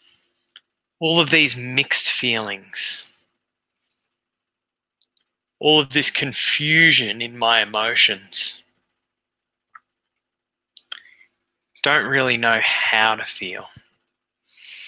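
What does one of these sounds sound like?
A man speaks calmly and clearly into a headset microphone, heard as over an online call.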